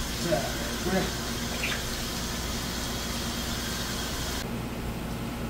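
Running water splashes over a fish.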